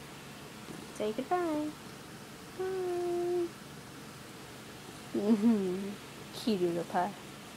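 A cat meows up close, over and over.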